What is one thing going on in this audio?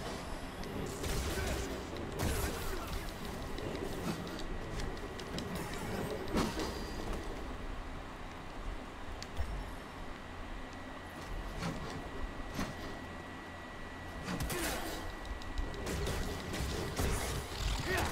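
Blades clash with sharp, crackling hits.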